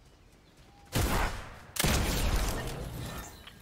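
A gun fires a few loud shots.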